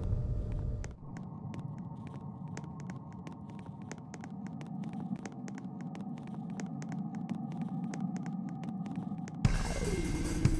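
Footsteps patter quickly on a wooden floor.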